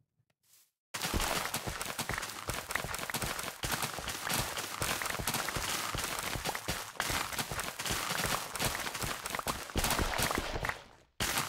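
Crops rustle and snap quickly as they are harvested.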